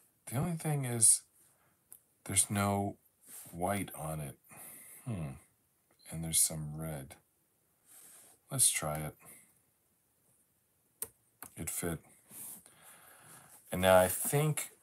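Jigsaw puzzle pieces click softly as they are pressed into place.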